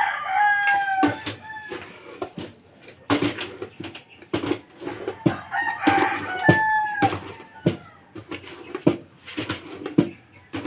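A wooden pestle pounds repeatedly in a metal mortar with dull thuds.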